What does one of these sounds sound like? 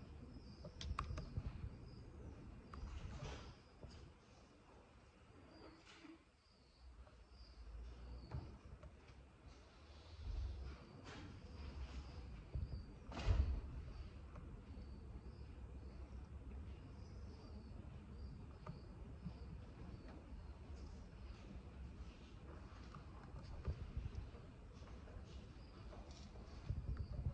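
Fingers tap softly on a table close by.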